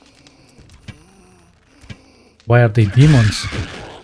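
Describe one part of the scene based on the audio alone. A sword strikes an enemy with a heavy blow.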